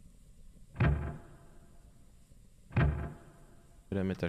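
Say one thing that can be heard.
A heavy thump lands on railway track.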